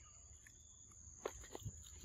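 A monkey moves off through undergrowth, rustling leaves.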